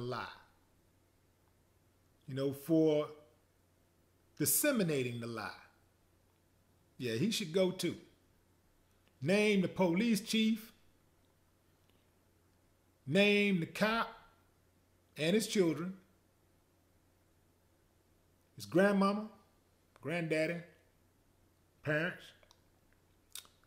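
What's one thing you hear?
A man speaks calmly and slowly in short phrases, close to a microphone.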